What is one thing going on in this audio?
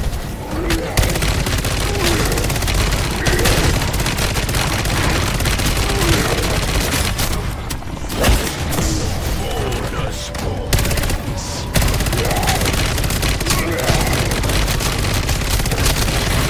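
Explosions boom and flames roar.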